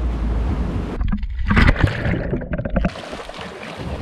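A person splashes into the water.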